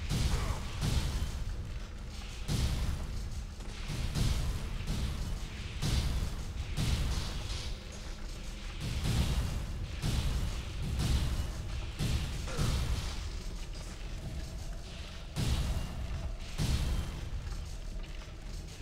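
Heavy footsteps thud quickly on stone stairs.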